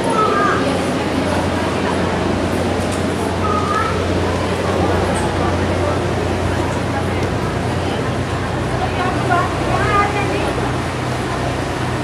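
Men and women murmur and talk indistinctly nearby.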